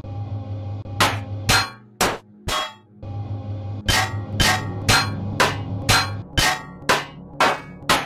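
A cutting tool fires in short, sharp bursts, again and again.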